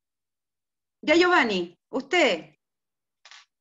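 A child speaks briefly over an online call.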